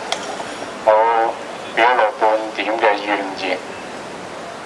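A middle-aged man shouts through a microphone, heard over a loudspeaker outdoors.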